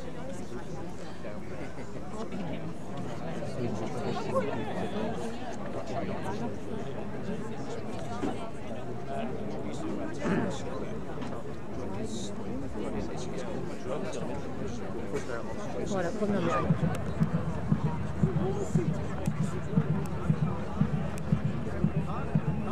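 A crowd of men and women murmurs and chatters nearby outdoors.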